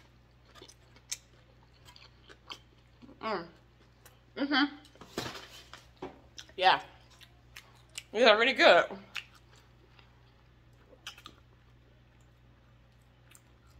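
Food crunches and clicks with small chewing sounds up close.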